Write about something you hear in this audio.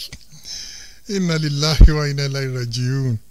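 A man speaks animatedly into a microphone.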